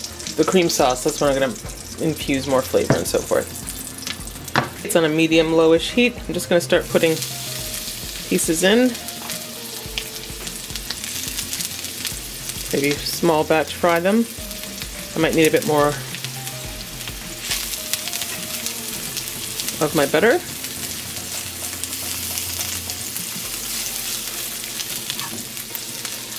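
Butter and oil sizzle in a hot frying pan.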